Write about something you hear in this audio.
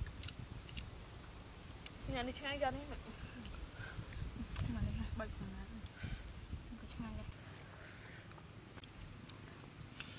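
Crab shells crack and crunch in a young woman's hands.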